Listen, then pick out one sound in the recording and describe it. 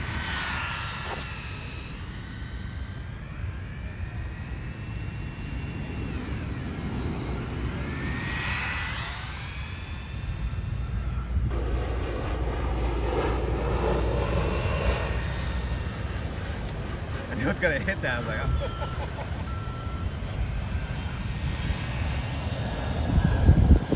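A toy car's electric motor whines, rising and falling in pitch as it speeds up and slows down.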